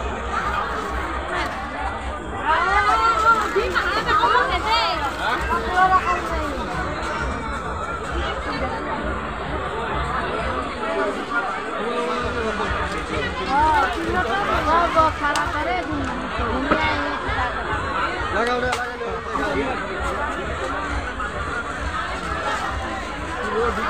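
A crowd of men and women chatter all around, close by.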